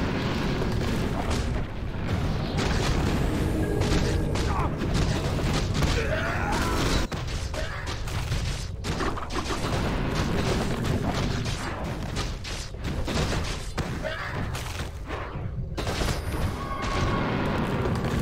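Weapons clash and spells burst in a game battle.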